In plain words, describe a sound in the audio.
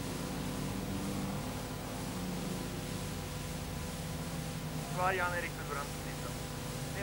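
A car engine drones steadily in the distance.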